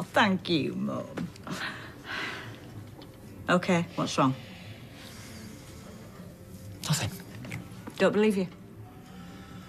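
A middle-aged woman speaks with feeling, close by.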